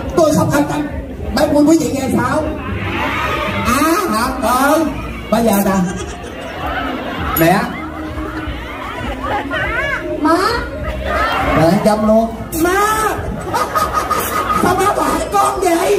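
A young man speaks with animation into a microphone over loudspeakers.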